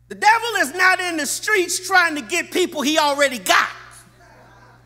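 A middle-aged man preaches loudly and with passion into a microphone.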